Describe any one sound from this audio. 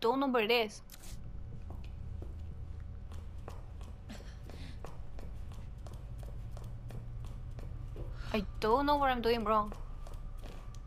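Footsteps tap slowly on a hard floor.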